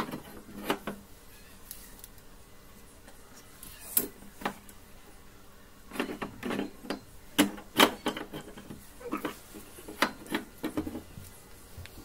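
Plastic and metal parts click and knock as hands work on the back of a television.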